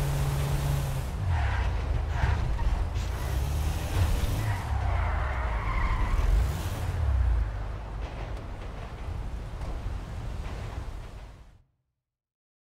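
A truck's engine slows and idles as the truck pulls to a stop.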